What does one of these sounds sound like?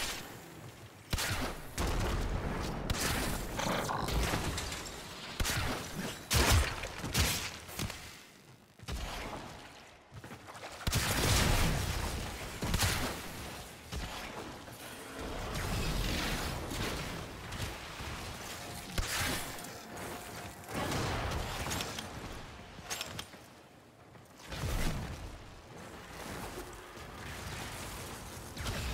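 Bowstrings twang and arrows strike enemies in quick bursts.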